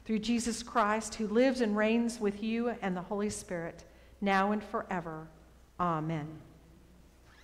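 An elderly woman speaks calmly into a microphone.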